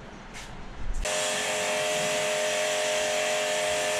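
A pressure washer sprays water in a steady, loud hiss with a humming pump.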